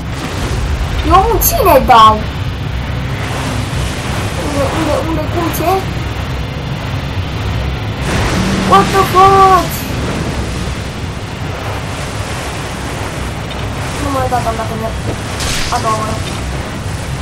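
A large creature lets out deep, wailing roars again and again.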